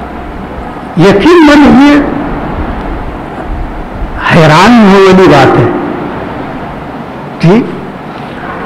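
An elderly man recites in a slow, melodic chant into a microphone.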